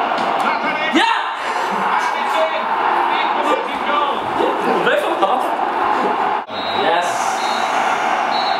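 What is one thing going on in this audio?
Another young man laughs and shouts playfully close by.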